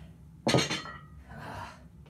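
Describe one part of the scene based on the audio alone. A weight thuds onto the floor.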